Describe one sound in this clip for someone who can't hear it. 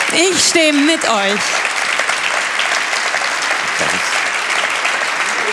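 A large crowd claps and cheers.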